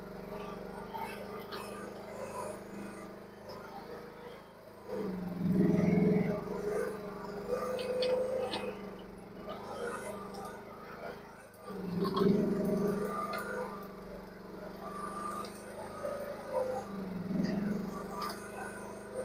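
A small diesel excavator engine hums steadily at a distance and revs up now and then.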